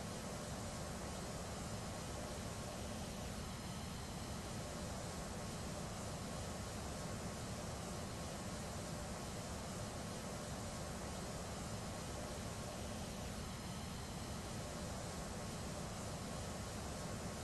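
Jet engines hum steadily.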